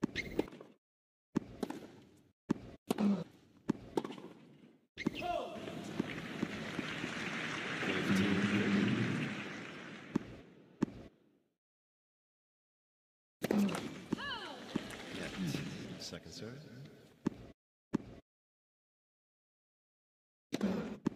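A tennis ball bounces and is struck with sharp pops.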